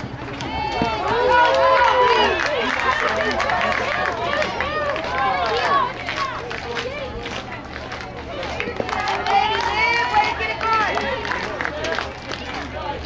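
Young girls cheer and shout excitedly outdoors.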